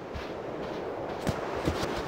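Footsteps run across sand.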